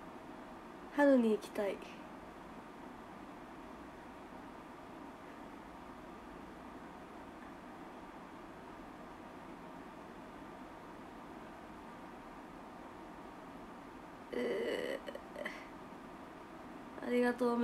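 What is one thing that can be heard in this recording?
A young woman speaks brightly and close by, in short bursts.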